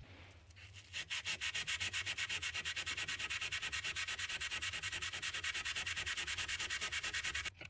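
A sharpening stone rubs back and forth rapidly over steel.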